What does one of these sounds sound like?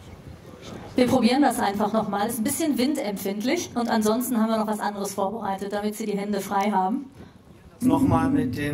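A middle-aged man speaks calmly into a microphone over loudspeakers.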